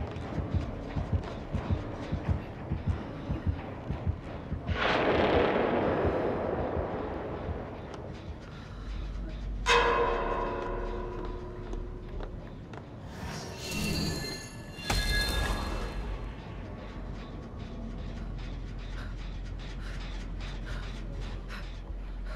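Quick footsteps patter on a wooden floor.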